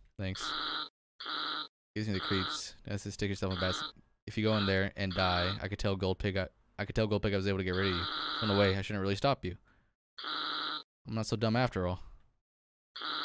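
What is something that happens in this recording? A young man reads out lines with animation, close to a microphone.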